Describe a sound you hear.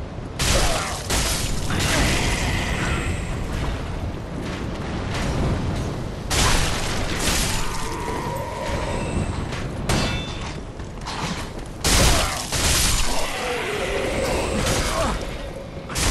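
Swords clash and clang against armour in a fight.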